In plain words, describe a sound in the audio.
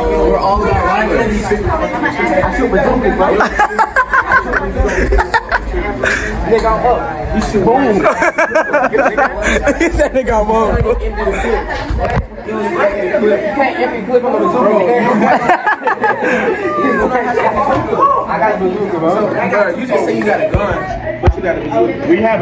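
Many teenagers talk and laugh loudly all around, close by in an echoing room.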